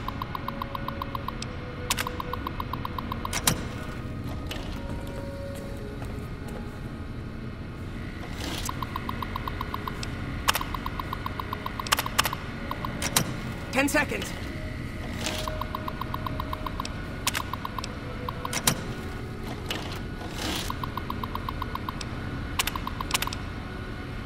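A computer terminal ticks rapidly as text prints out.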